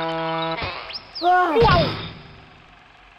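Cartoon characters tumble and thump onto the ground.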